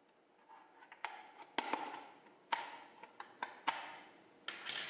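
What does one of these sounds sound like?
A plastic case clicks and snaps as a tool pries it open.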